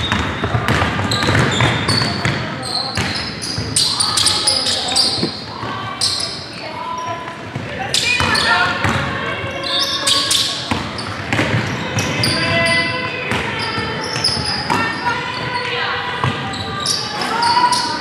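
Young women players shout to each other.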